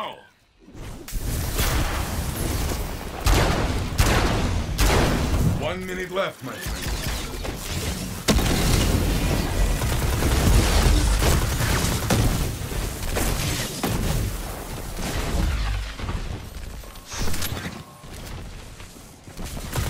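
Guns fire in rapid bursts with loud blasts and explosions.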